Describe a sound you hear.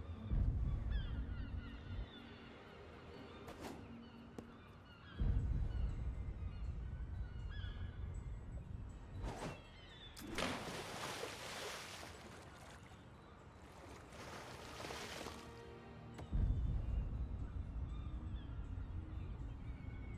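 Waves lap gently against wooden posts.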